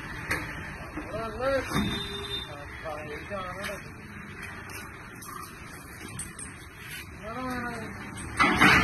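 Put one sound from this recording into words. Men call out nearby.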